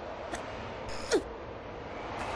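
A heavy thud sounds as someone climbs onto a stone block.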